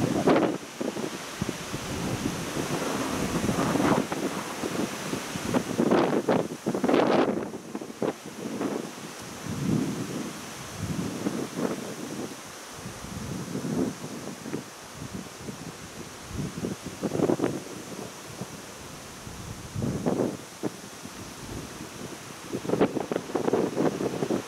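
Wind gusts rumble and buffet outdoors in the open.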